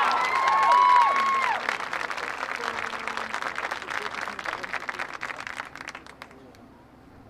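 A marching band's drums roll and rattle, then stop.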